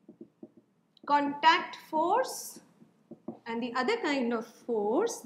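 A woman speaks clearly and calmly, close by.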